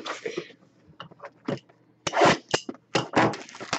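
Small cardboard boxes knock against a table.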